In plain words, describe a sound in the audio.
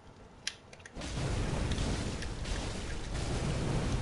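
A monster's deep rumbling growl fills the air.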